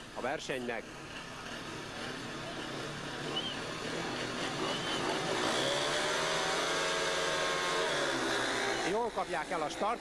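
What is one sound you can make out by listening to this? Several motorcycle engines rev loudly and roar away.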